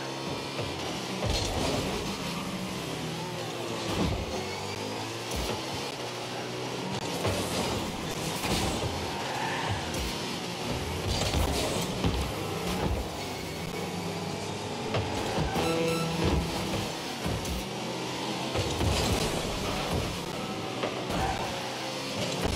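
A game car engine hums and roars with boost.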